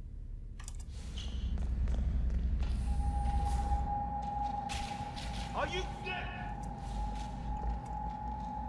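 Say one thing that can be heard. Soft footsteps creep across a hard floor.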